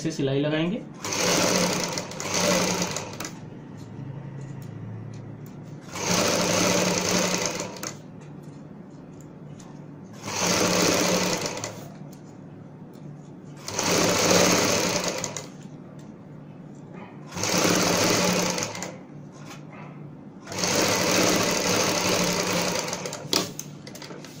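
A sewing machine runs in short bursts, whirring and stopping again.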